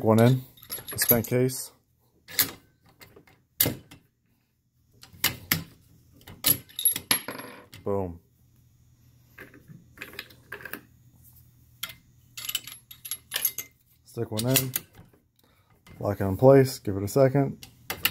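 A rifle bolt clacks open and shut.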